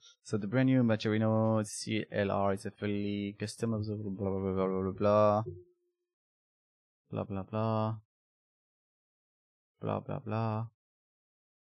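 A young man talks calmly and closely into a microphone, with pauses.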